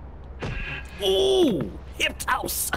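A robot enemy lets out a falling electronic whine as it is defeated.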